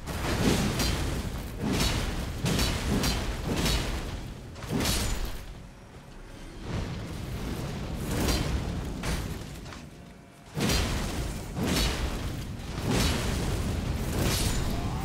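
Metal blades clash and strike in a fast fight.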